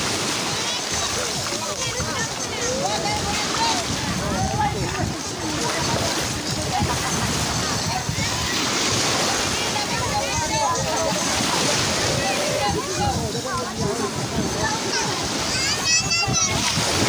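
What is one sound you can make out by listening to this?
Small waves lap and splash in shallow water.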